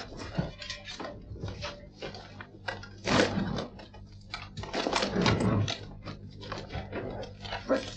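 Metal armour clanks and rattles as men move about.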